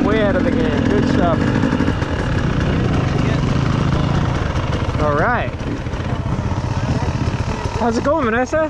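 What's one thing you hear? A dirt bike engine revs up and down sharply.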